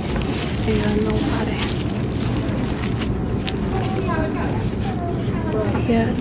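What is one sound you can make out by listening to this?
Aluminium foil crinkles close by.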